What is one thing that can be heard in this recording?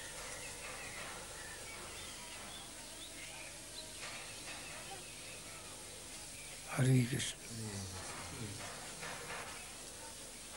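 An elderly man speaks calmly nearby.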